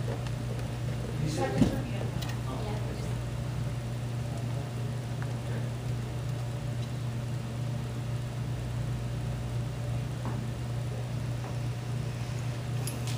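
A man speaks calmly through a loudspeaker in a large echoing hall.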